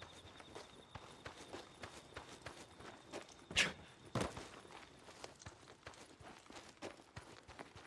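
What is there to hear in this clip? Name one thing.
Footsteps thud quickly on dirt and gravel.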